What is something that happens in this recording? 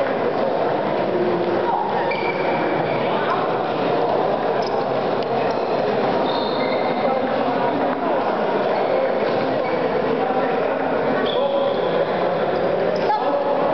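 A ping-pong ball clicks against paddles and the table.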